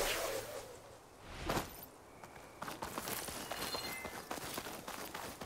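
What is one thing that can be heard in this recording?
Footsteps crunch over rocky ground and leaves.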